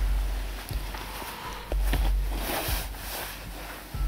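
Hands fumble and rub close to the microphone with rustling and dull thumps.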